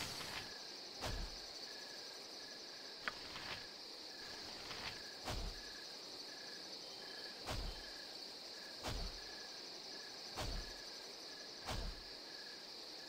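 Heavy blows thud at a steady pace.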